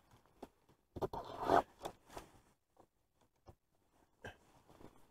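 Fabric rustles and brushes close by.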